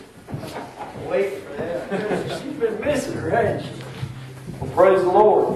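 Several people talk and laugh in an echoing hall.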